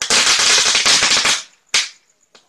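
Firecrackers crackle and pop rapidly nearby.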